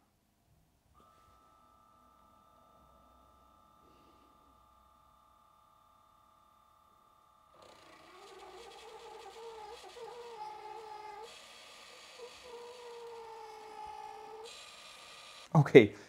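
A small water pump hums steadily.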